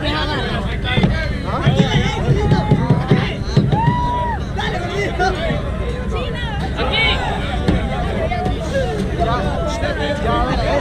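A crowd of young people chatter and call out nearby.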